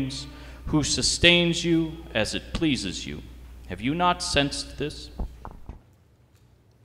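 A young man speaks calmly into a microphone over loudspeakers in a large echoing hall.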